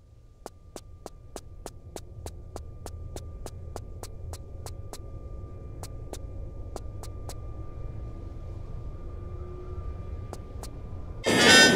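Quick footsteps clatter steadily on a hard floor.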